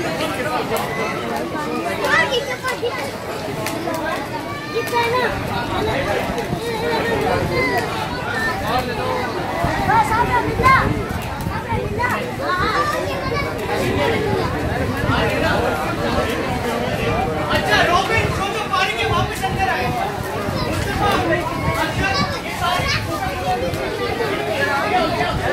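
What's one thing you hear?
A crowd of men and children chatters loudly all around.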